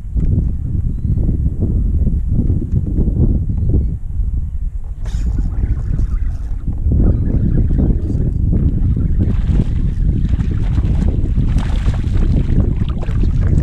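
A fishing reel whirs as a line is wound in.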